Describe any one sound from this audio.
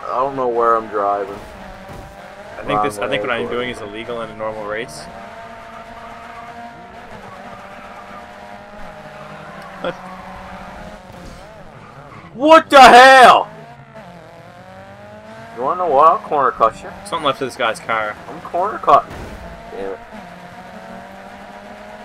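Racing car engines roar steadily at high revs.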